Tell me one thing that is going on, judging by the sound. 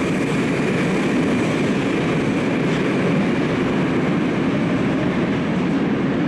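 A subway train approaches with a low rumble.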